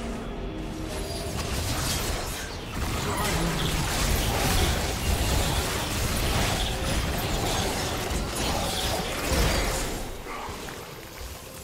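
Game spells burst and crackle in a fight.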